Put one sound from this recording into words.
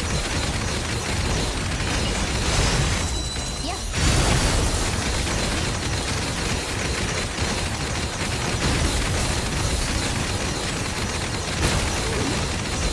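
Rapid sword slashes and magical blasts clash in a fast battle.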